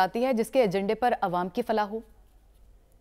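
A woman speaks with animation into a microphone.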